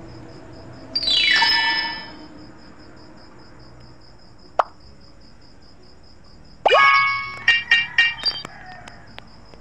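A bright, tinkling chime plays for a win.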